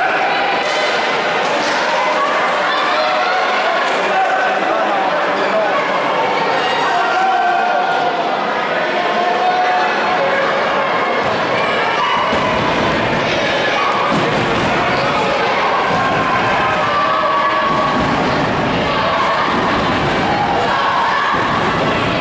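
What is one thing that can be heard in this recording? A crowd of spectators chatters in an echoing gym.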